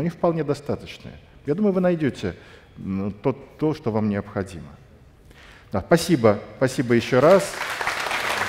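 A middle-aged man speaks with animation through a microphone in a large echoing hall.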